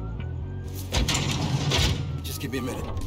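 A van's sliding door rolls open with a clatter.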